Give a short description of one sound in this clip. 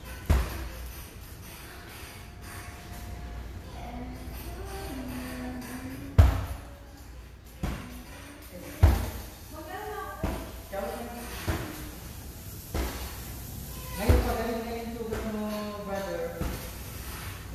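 Feet thump and stamp on a wooden floor.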